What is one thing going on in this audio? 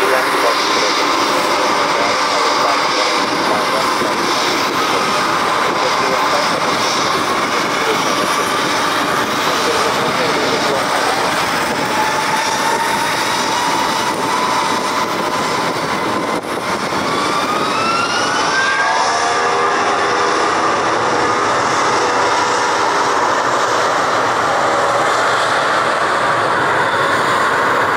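A large jumbo jet's engines whine and rumble steadily close by.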